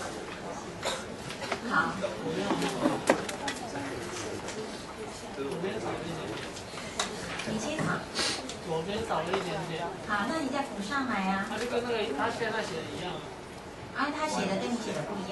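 A middle-aged woman speaks calmly through a microphone.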